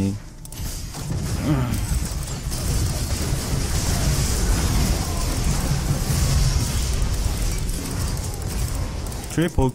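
Game battle effects crash and clash.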